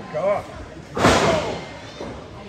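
A body slams onto a wrestling ring with a loud thud.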